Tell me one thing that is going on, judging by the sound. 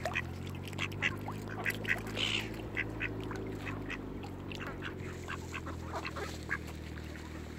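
Ducks quack and call nearby.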